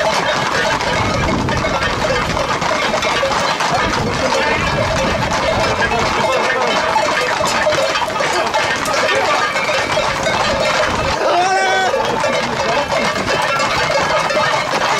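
A crowd of men talks and shouts outdoors.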